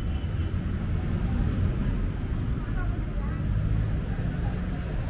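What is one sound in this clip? Footsteps tap on a tiled walkway.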